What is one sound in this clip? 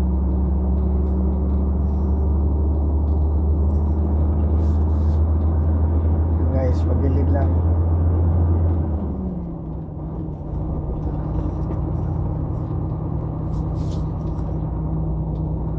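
Tyres roll on a smooth road with a steady rumble.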